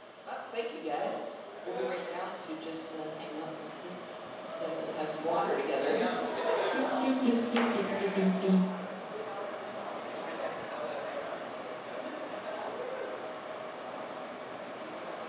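An electric guitar plays loose notes through an amplifier.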